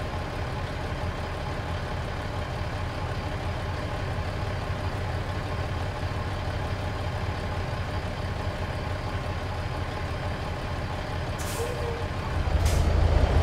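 A truck's diesel engine idles with a low, steady rumble.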